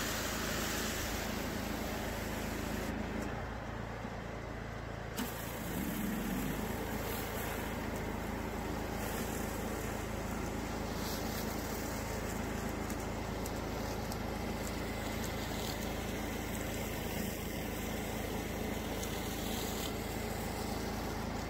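A pressure washer sprays water onto concrete with a loud, steady hiss.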